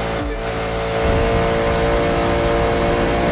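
A car's engine surges louder with a boost.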